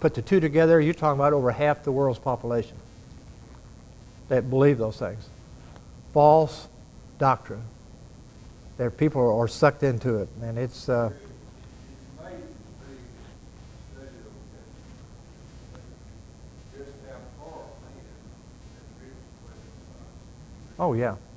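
An elderly man speaks calmly through a microphone in an echoing hall, with pauses.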